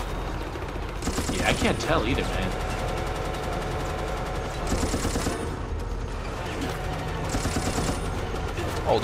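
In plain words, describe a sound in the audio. A rifle fires in short rapid bursts.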